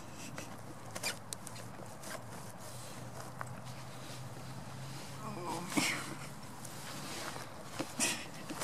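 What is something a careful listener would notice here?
Dry straw rustles and crunches underfoot.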